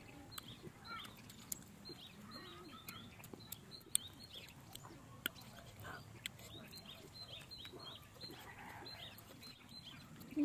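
A young woman chews food noisily close by.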